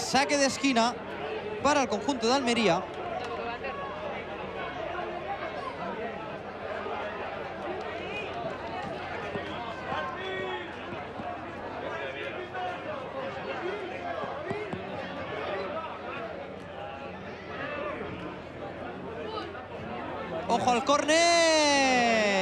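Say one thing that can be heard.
Young players shout and call to each other across an outdoor pitch.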